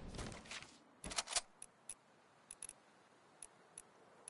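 Short game menu clicks tick softly.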